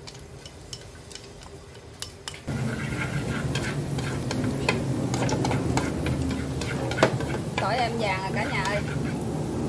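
Chopsticks scrape and tap against a metal wok.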